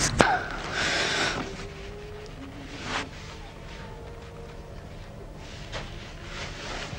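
Cloth rustles close by as a man handles a jacket.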